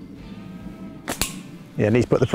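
A slingshot snaps as a shot is released.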